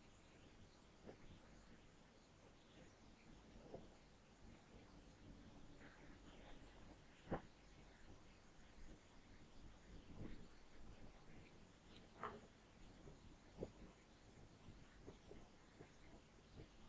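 A marker pen squeaks and taps on a whiteboard.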